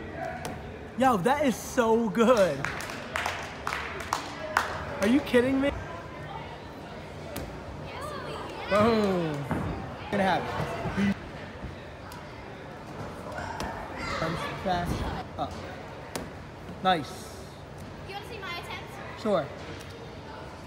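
Young girls talk and laugh with animation nearby in a large echoing hall.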